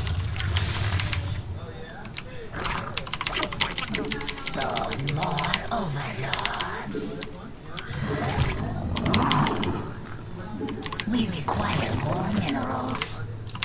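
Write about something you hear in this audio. Rapid clicks and bursts of game battle effects crackle.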